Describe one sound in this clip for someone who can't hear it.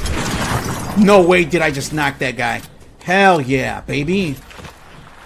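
A man talks excitedly into a microphone.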